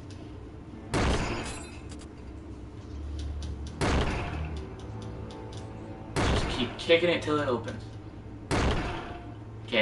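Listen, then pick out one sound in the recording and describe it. Heavy thumps strike a wooden door.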